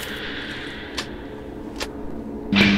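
A switch clicks.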